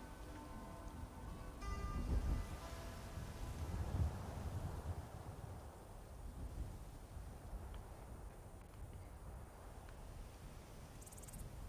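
Heavy footsteps tread through grass.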